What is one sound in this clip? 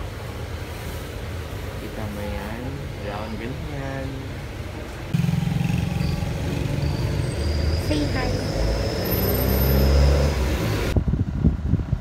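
A motorcycle engine hums past on a street.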